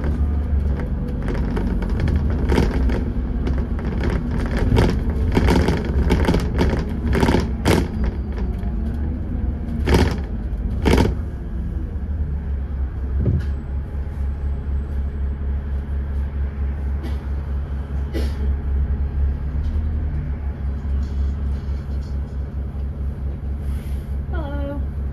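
A bus engine rumbles low and steady from close by.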